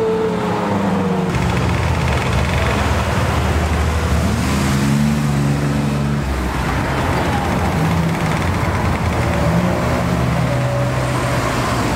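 A Maserati sports car drives past close by.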